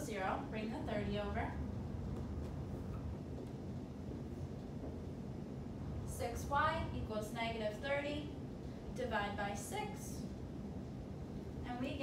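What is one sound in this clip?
A young woman speaks calmly, explaining as she goes.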